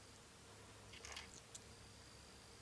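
Tiny china pieces clink softly together.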